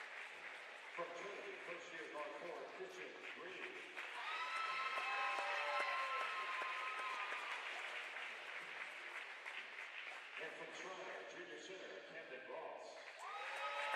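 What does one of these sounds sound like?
A man speaks over a loudspeaker, announcing.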